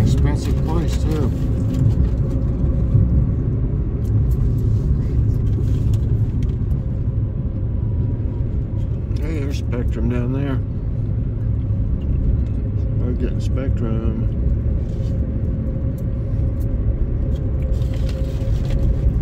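A car drives steadily along a road with a low engine and road rumble.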